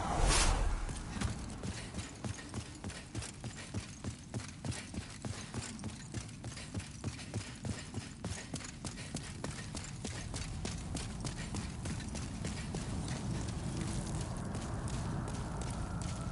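Armored footsteps run quickly on stone.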